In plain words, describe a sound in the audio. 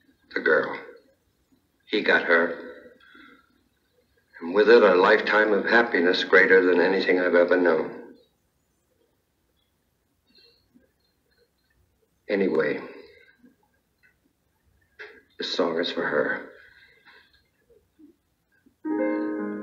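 A woman speaks quietly and calmly.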